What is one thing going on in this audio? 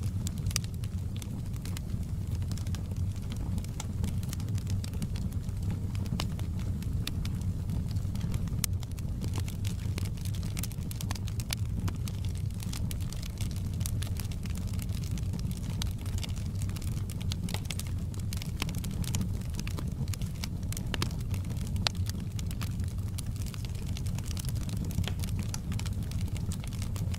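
A log fire roars steadily.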